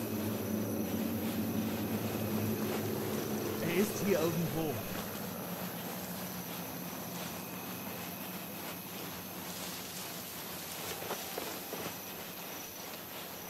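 Soft footsteps shuffle over sand and gravel.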